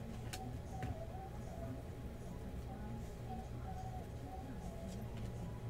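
Trading cards rustle and click as they are handled and shuffled.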